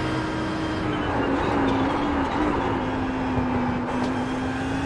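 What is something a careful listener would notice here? A racing car engine burbles and pops as the car brakes and shifts down.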